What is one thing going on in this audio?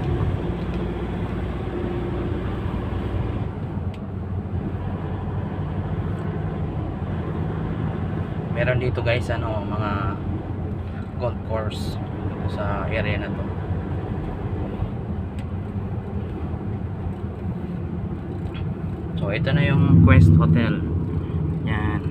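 A car drives on smooth asphalt, its road noise and engine hum heard from inside.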